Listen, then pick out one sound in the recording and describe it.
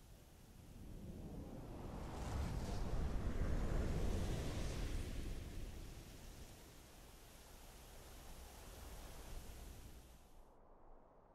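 A waterfall rumbles in the distance.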